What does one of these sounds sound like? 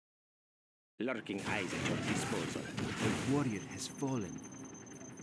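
A shell explodes with a loud boom.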